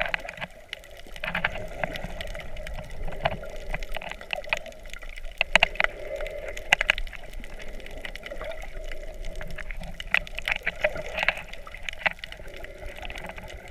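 Underwater, muffled water swirls and rushes around the listener.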